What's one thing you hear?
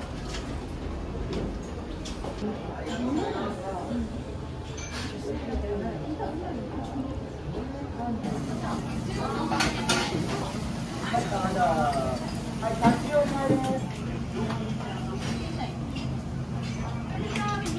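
Men and women chatter around in a busy, lively room.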